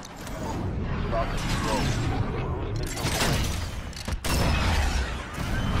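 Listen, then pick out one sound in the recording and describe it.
A missile roars loudly as it dives toward the ground.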